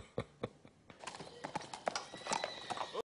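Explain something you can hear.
Horse hooves clop on a hard yard.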